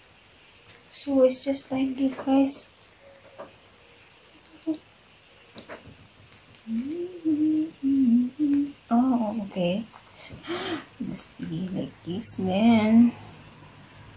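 A woman speaks close by, calmly, in short phrases.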